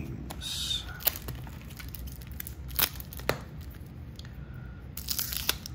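A wax-paper card pack crinkles as it is pulled from a cardboard box.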